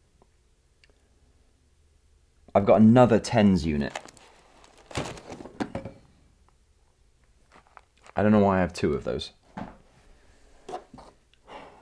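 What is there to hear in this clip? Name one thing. Items clatter softly as a young man rummages in a drawer.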